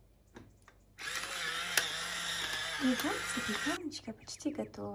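A pepper grinder grinds with a dry, rasping crunch.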